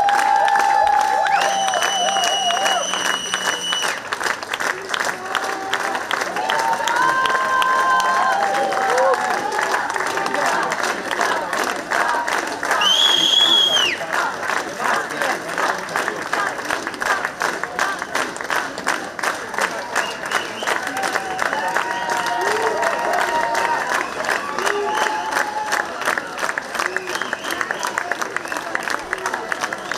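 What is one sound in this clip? A crowd claps hands in a fast, steady rhythm.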